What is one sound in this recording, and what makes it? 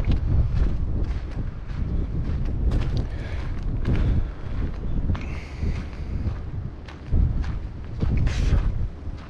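Wind blows gusting across the microphone outdoors.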